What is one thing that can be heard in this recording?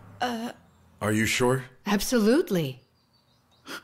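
A man speaks softly close by.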